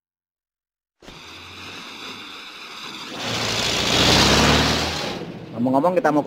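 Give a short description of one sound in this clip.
A car engine approaches and roars past.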